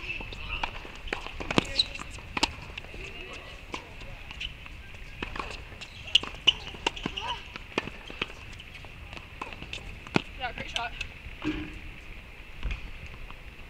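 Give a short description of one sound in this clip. A tennis ball is struck sharply with a racket, back and forth in a rally.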